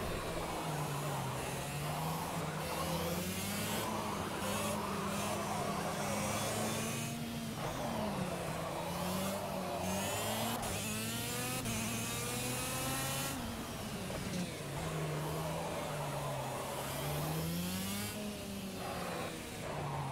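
A kart engine buzzes and whines, rising and falling in pitch as it speeds up and slows down.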